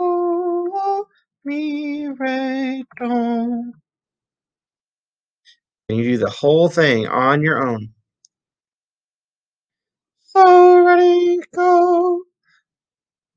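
A man sings short notes clearly into a nearby microphone.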